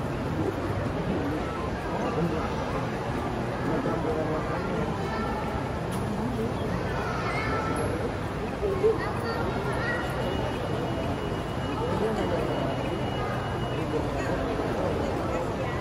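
A felt-tip marker squeaks and scratches on paper.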